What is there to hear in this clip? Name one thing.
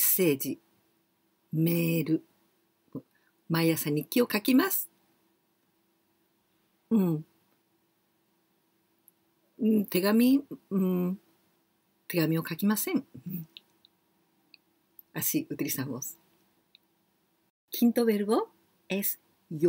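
A woman speaks clearly and slowly into a close microphone, pausing between words.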